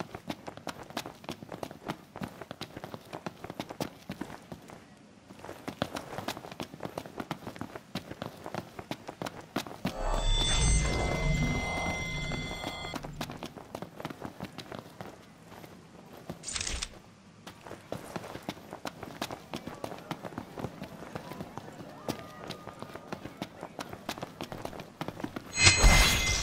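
Quick footsteps run and patter on hard pavement.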